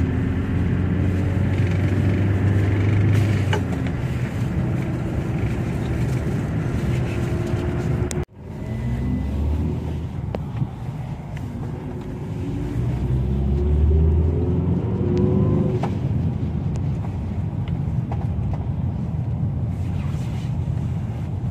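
A bus engine drones and rises and falls in pitch as the bus drives.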